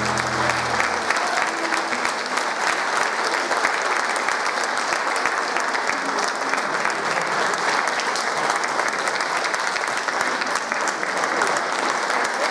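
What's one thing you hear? A choir of elderly women and men sings together in a reverberant hall.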